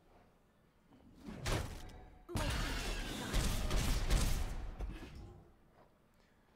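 Magical card-game effects whoosh and crash.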